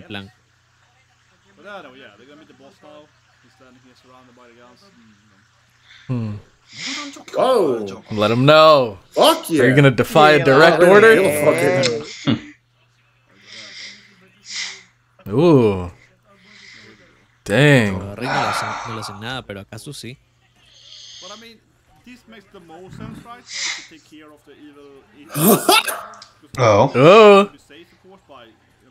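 Several men react with laughter and exclamations, heard through microphones.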